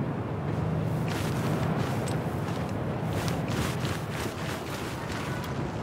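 Footsteps shuffle softly through sand.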